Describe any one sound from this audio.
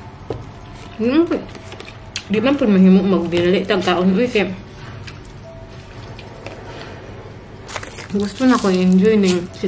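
A young woman speaks close by with animated expression.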